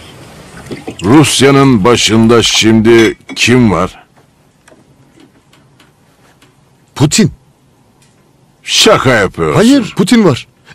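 An older man speaks in a low, calm voice nearby.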